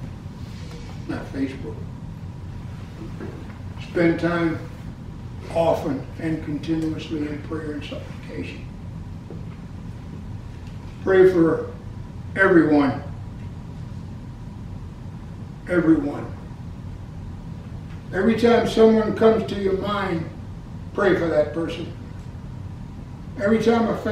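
An elderly man speaks slowly and deliberately, with pauses, close by.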